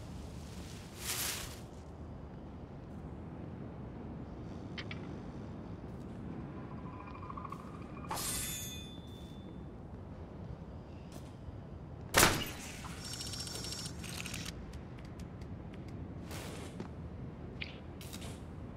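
Footsteps tap softly on stone pavement.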